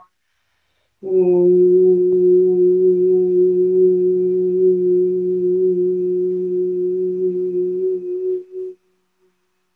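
A middle-aged woman hums a long, steady held note.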